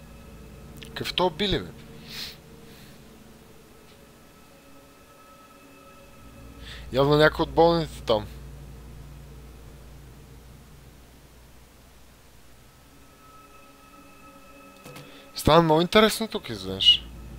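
A young man speaks close to a microphone in short bursts.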